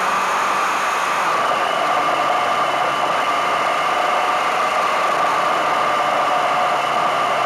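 Wind rushes past the microphone on a moving motorcycle.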